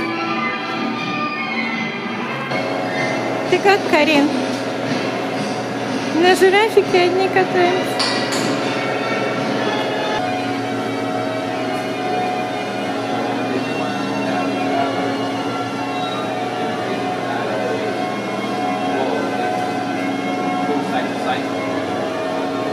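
Carousel organ music plays steadily throughout.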